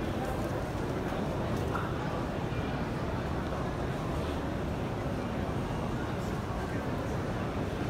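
A large crowd murmurs steadily in the distance.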